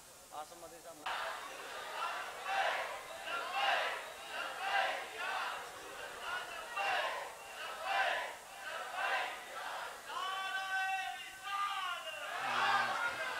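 A crowd of men chants together in a steady rhythm.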